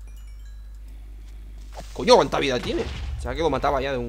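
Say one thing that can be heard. A monster bursts with a dull explosion.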